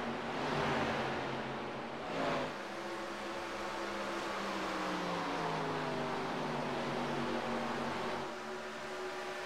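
Race car engines roar and whine as the cars speed past on a track.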